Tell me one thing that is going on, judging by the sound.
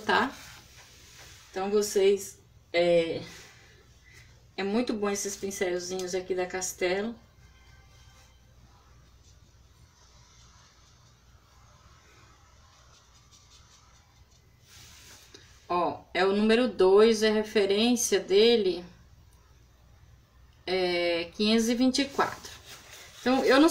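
A middle-aged woman talks calmly close by.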